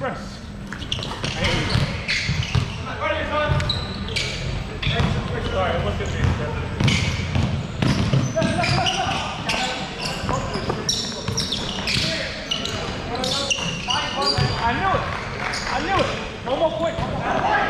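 Young men shout and call out to each other during play.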